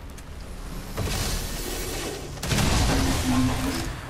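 A futuristic rifle fires a crackling energy blast.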